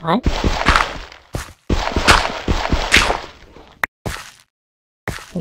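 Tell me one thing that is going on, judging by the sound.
Gravel crunches in quick, rough bursts as it is dug.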